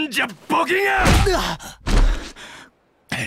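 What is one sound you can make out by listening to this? A body thuds onto the ground.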